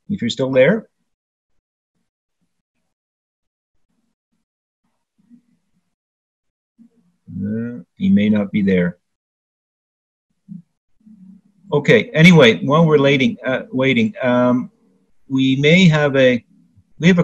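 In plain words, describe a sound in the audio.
An older man speaks with animation over an online call, with pauses.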